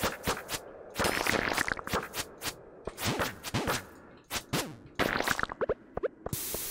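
A sword swishes and strikes with sharp hits, over and over.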